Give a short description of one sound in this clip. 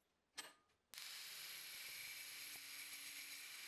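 An angle grinder whines loudly, grinding metal.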